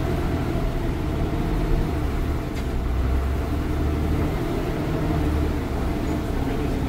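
The bus body rattles and creaks over the bumpy road.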